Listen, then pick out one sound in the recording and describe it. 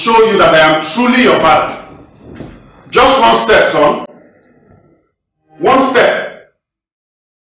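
A man speaks forcefully and with emotion, close by.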